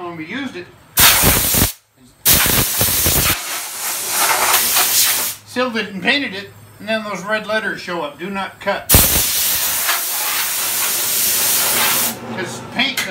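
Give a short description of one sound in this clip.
Compressed air hisses in loud bursts.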